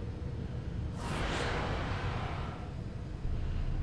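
A machine whooshes and shimmers with a rushing hiss.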